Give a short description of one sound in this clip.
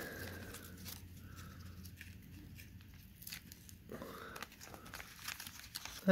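Foil wrapping crinkles and tears.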